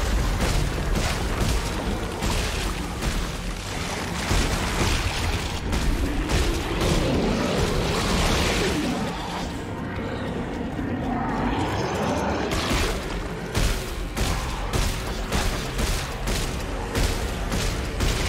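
A man talks into a headset microphone with animation.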